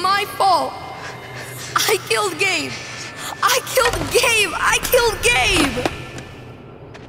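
A teenage boy speaks in a breaking, sobbing voice, close by.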